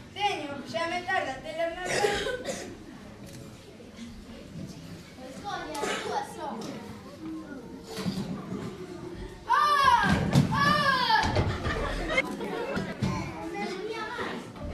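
A child speaks loudly on a stage.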